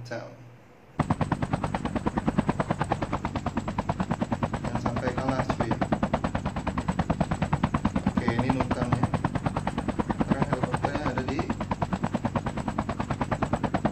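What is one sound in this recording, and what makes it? A helicopter's rotor chops rapidly and steadily.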